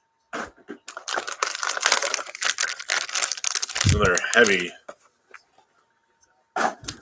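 A foil wrapper crinkles loudly in hands.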